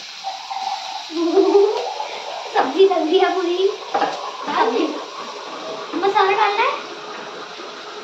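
A young girl speaks calmly, close by.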